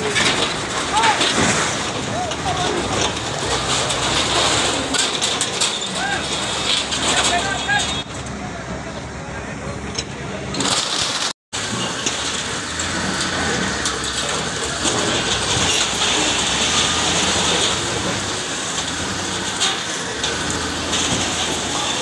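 Rubble and debris crash and clatter as a building is torn down.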